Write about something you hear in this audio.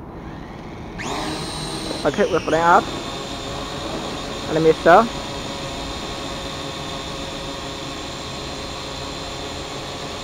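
A drone's propellers spin up and whir steadily with a high buzzing hum.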